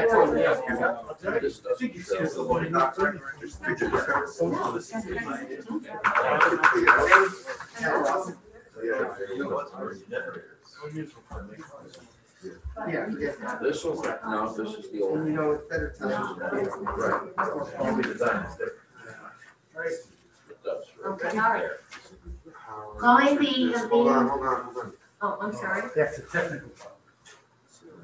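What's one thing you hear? An adult speaks calmly over an online call.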